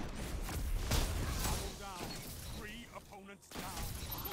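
A swirling energy weapon whooshes and crackles.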